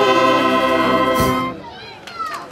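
A band of wind instruments plays a tune outdoors and stops abruptly.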